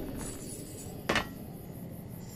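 A metal box lid clicks open.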